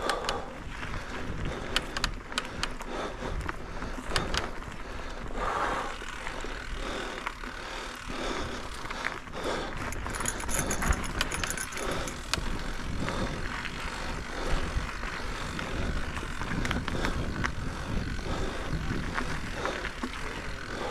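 Bicycle tyres rumble and crunch over a dirt trail.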